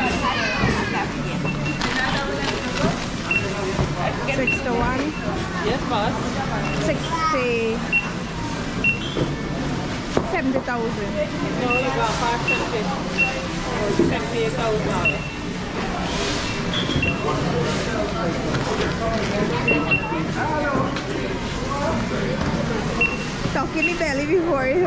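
Many people chatter in an echoing hall.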